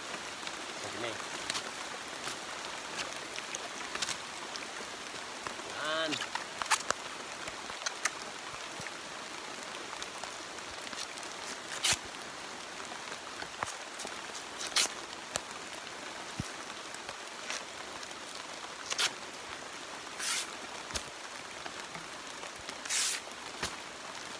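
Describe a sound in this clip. Strips of dry bamboo rustle and crackle as they are handled.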